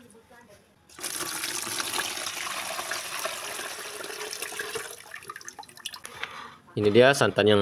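Liquid pours steadily through a strainer.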